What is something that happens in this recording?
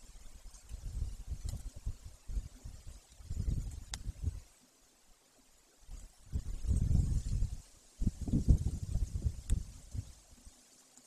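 A large bird tears at its prey with rustling, scraping sounds close by.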